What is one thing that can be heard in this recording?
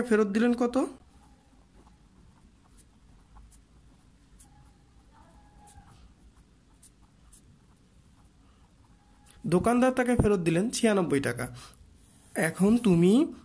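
A pen scratches on paper as it writes.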